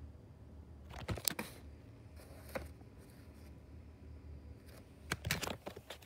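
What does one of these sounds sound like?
A cardboard box rustles and scrapes as a hand handles it.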